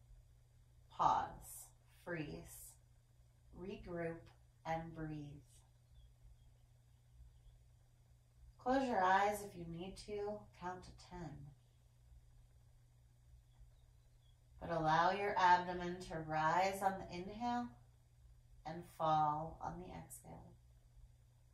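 A woman speaks calmly and softly nearby, with long pauses.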